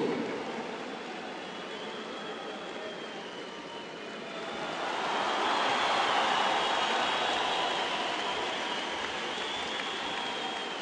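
A large crowd in an echoing arena murmurs steadily.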